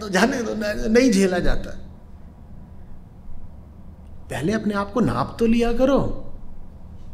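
A man speaks calmly and thoughtfully into a close microphone, with long pauses.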